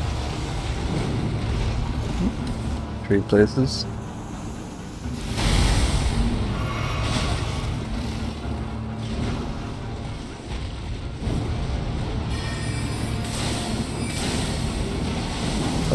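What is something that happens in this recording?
Swords clash and slash in a game fight.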